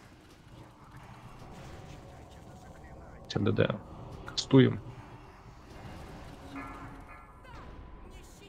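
Spell effects whoosh and crackle in a fantasy battle.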